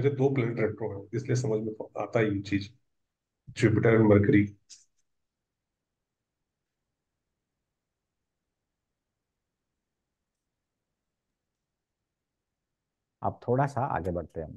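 A young man speaks clearly into a clip-on microphone, with pauses.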